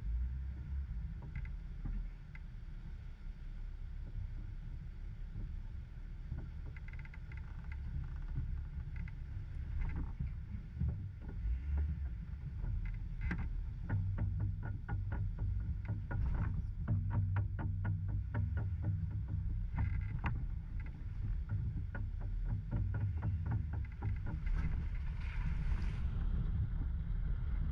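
Water flows over rocks in a shallow creek.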